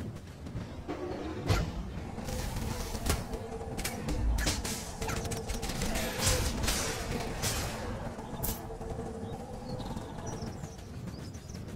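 A large game creature cries out.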